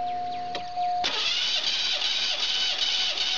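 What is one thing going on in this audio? A car engine runs nearby.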